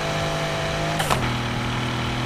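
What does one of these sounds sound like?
A racing car engine shifts gear with a sharp pop.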